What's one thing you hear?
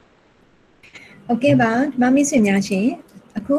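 A woman speaks calmly and clearly into a microphone, heard through an online call.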